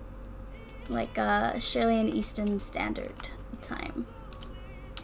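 A young woman speaks with animation through a close microphone.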